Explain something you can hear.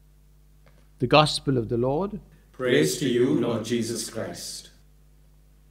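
An elderly man sings or reads out in a steady chant through a microphone in an echoing room.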